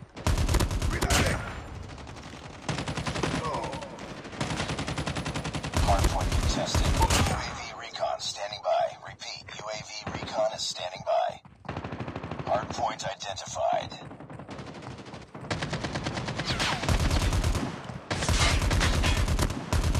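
Sniper rifle shots crack loudly.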